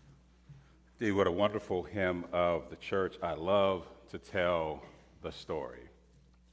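A man speaks with feeling through a microphone in an echoing room.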